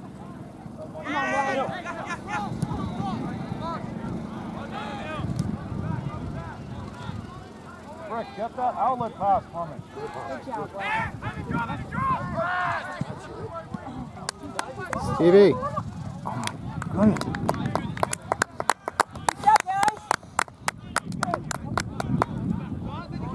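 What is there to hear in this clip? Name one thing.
Young players shout to each other outdoors across an open field.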